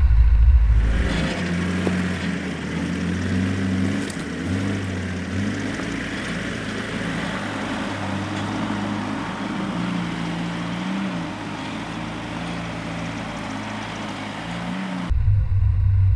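A four-wheel-drive engine revs and labours as it climbs a rocky track.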